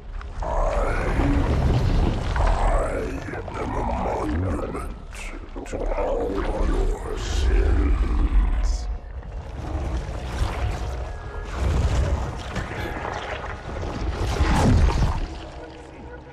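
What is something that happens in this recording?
A giant creature's tentacles thrash and rumble.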